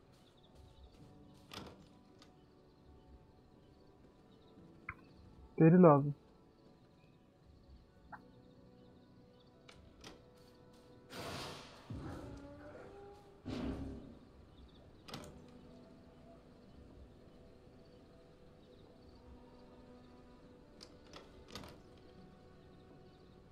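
Soft interface clicks sound as menus open and close.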